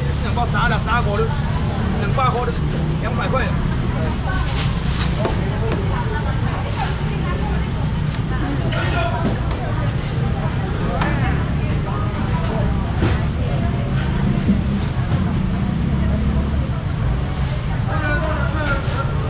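Voices of a crowd murmur and chatter nearby.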